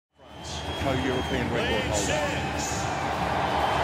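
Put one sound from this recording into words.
Fans in a stadium crowd whistle shrilly.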